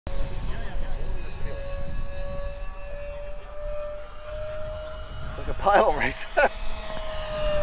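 A small model plane's engine drones steadily overhead, its pitch rising slightly as it passes.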